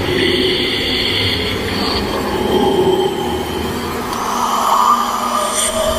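A woman gasps in fright close by.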